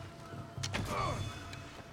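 A spear strikes a body with a sharp thud.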